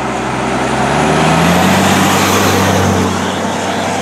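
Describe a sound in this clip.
A heavy truck engine rumbles as it drives close by.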